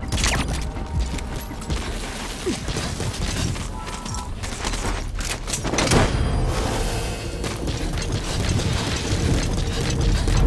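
Footsteps run quickly over dry, dusty ground.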